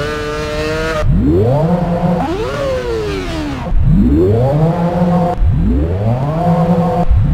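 A racing car engine revs up sharply through rising gear changes.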